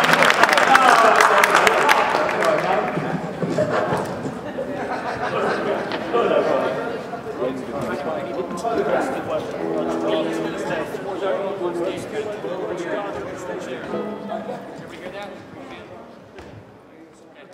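Several men talk and laugh together in a large echoing hall.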